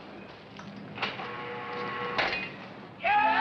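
A metal gate rattles and clanks.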